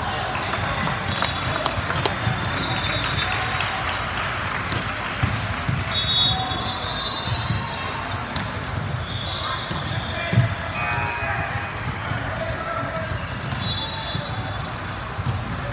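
A ball thuds off hands and the floor.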